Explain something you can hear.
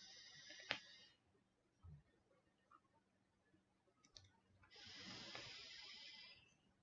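A man draws on an electronic cigarette close by, with a soft hissing sizzle.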